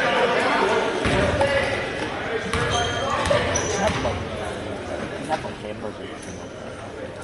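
A basketball thuds as a player bounces it before a free throw.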